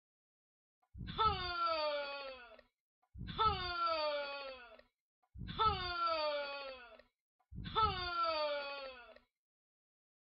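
A young girl close by lets out a loud, falling wail again and again.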